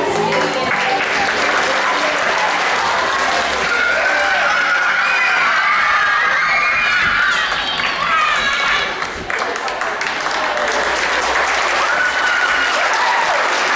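A group of children sing loudly together in a large echoing hall.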